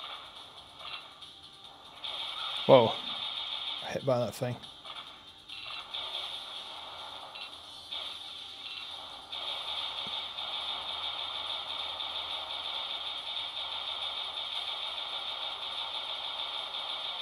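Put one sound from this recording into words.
Wind rushes steadily in a video game.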